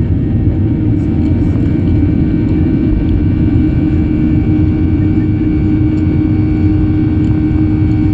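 Aircraft engines hum with a rising whine.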